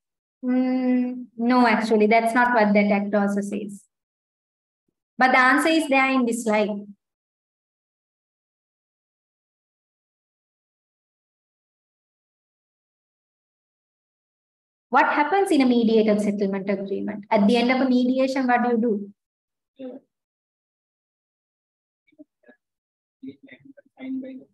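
A young woman speaks calmly through an online call, with pauses.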